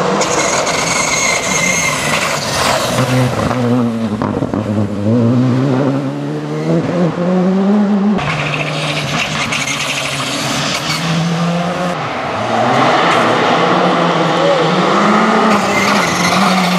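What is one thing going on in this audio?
Tyres crunch and hiss on gravel and tarmac.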